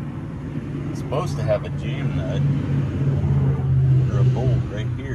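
A man speaks with effort close by.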